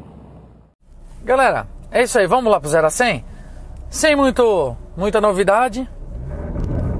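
A man talks with animation close by inside a car.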